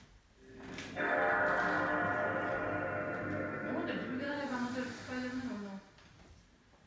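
A shimmering electronic startup chord swells and rings out through a television speaker, then fades.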